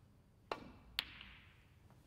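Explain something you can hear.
Snooker balls knock together with a click.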